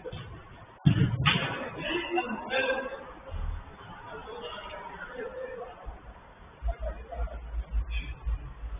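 Men shout to each other at a distance in a large echoing hall.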